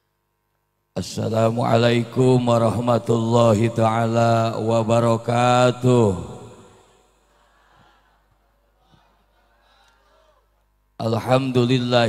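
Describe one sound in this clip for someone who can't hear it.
An elderly man chants in a long, sustained melodic voice through a microphone and loudspeakers, with echo.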